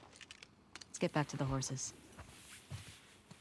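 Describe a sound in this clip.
A second young woman answers calmly.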